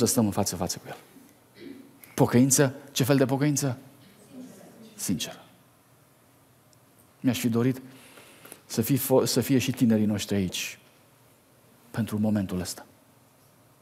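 A man speaks with animation through a microphone in a large echoing hall.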